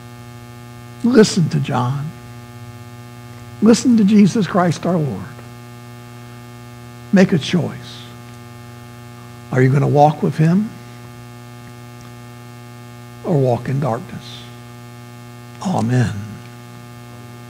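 A middle-aged man speaks with animation through a microphone, pausing between phrases.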